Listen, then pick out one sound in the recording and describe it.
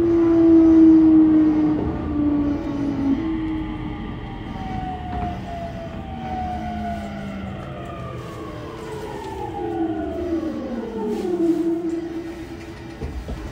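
A train's electric motors whine, falling steadily in pitch as the train slows down.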